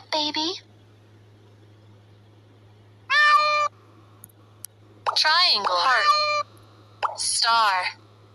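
Cheerful bright chime tones ring out in short bursts.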